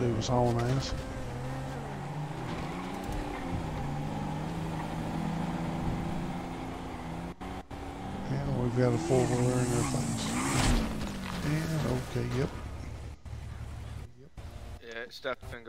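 A quad bike engine idles and revs.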